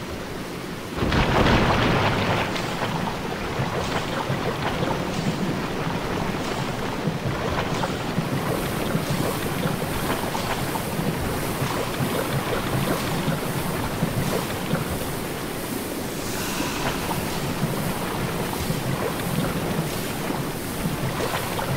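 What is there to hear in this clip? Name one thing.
Footsteps wade and splash steadily through shallow water.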